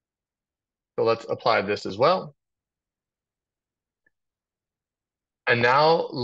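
A man speaks calmly through a microphone, in short bursts.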